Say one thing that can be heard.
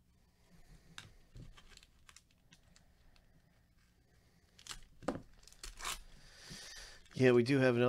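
A foil wrapper crinkles and rustles as it is handled.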